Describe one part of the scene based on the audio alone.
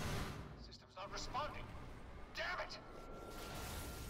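A man speaks tensely, then curses.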